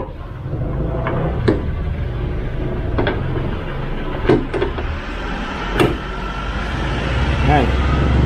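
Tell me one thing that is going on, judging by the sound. Metal parts click and clunk as a hood strut is handled.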